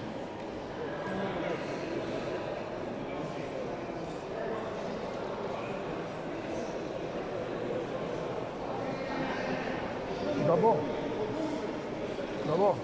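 Several men and women talk in a murmur nearby in an echoing hall.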